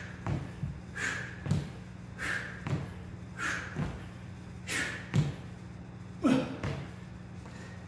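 Soft thuds land on a floor mat in a rhythm.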